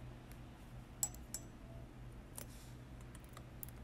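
A metal instrument clicks lightly against plastic teeth.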